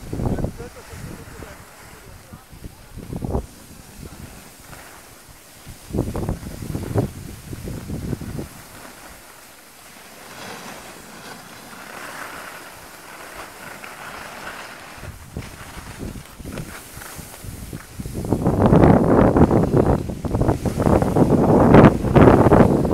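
A snowboard scrapes over snow.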